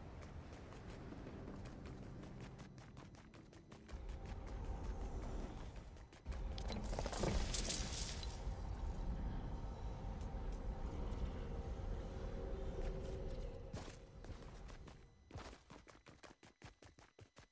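Footsteps run over stone paving.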